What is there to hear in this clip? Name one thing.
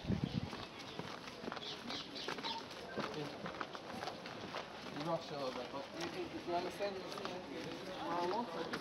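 Footsteps tap on stone paving at a brisk walk.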